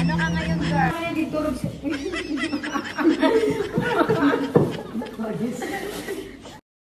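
A young woman laughs loudly.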